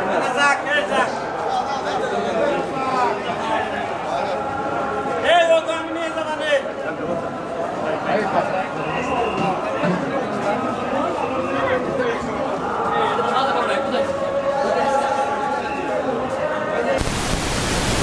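Bamboo horns blow long, wavering notes close by.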